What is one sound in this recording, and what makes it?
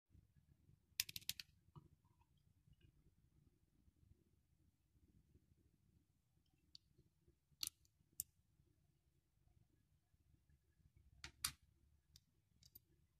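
Small metal parts click and tap against hard plastic.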